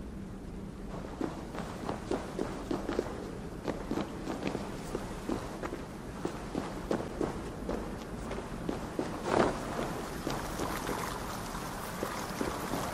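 Footsteps crunch over loose stones.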